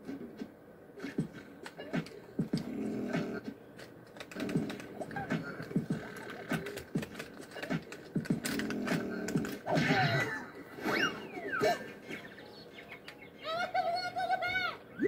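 Playful game music and sound effects play from a speaker.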